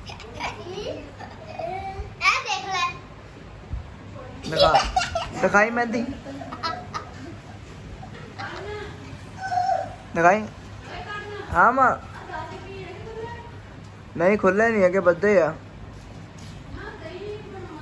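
Young girls talk and laugh close by.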